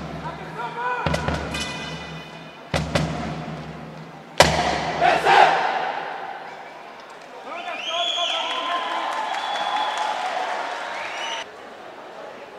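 A marching band plays brass and drums in a large echoing hall.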